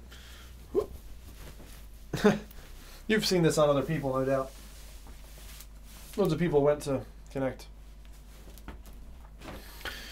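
Fabric rustles as a jacket is pulled off.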